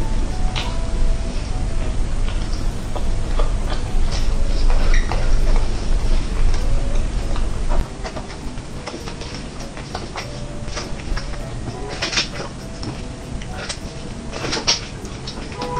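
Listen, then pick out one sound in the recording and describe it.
A young woman chews food noisily.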